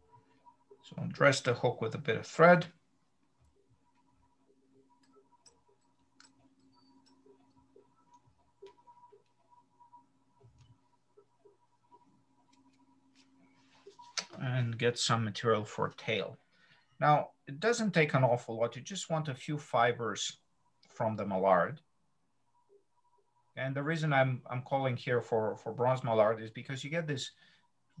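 A middle-aged man talks calmly through an online call, pausing now and then.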